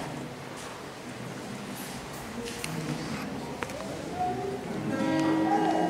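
An acoustic guitar plays nearby.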